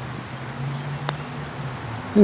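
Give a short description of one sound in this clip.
A golf club taps a ball with a light click.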